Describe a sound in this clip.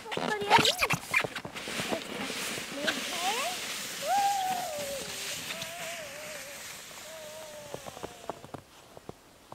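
A sled scrapes and hisses as it slides over snow.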